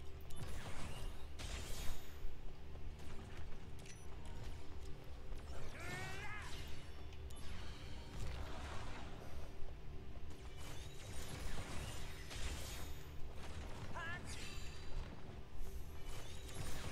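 Swords slash and clash in a fast fight, with whooshing strikes.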